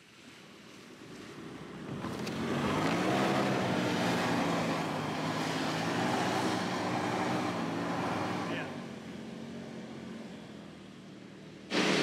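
A pickup truck's engine revs hard as its tyres spin and churn through sand.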